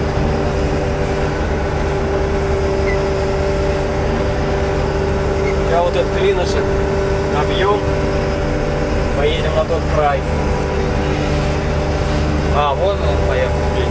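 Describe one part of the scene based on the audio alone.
A diesel Kirovets tractor drones under load, heard from inside the cab.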